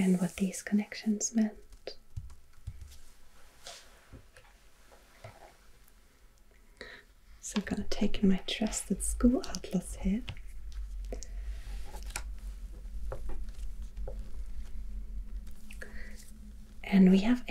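Hands slide and rustle across a sheet of paper.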